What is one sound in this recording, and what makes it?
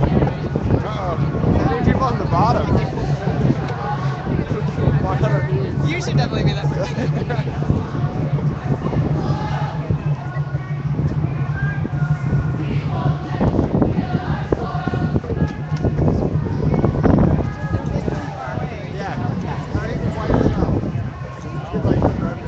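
A crowd of marchers chatters and calls out nearby, outdoors.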